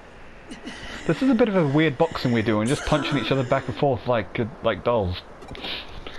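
A young man pants and swears in frustration.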